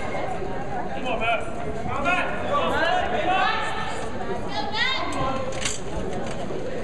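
Men shout encouragement loudly.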